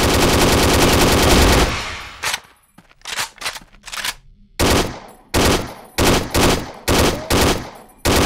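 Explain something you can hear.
Rifle shots fire in rapid bursts.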